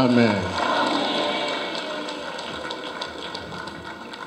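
Women clap their hands.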